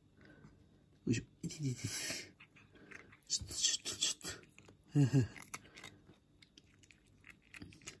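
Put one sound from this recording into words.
A cat crunches dry kibble.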